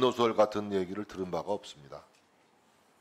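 A middle-aged man speaks firmly through a microphone.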